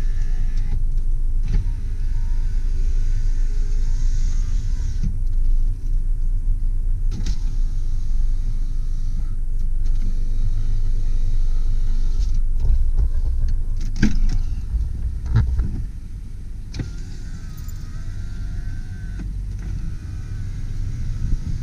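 A car engine rumbles low and steady from inside the car.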